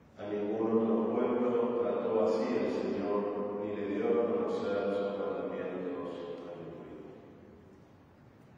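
A middle-aged man chants in song through a microphone, in a large echoing hall.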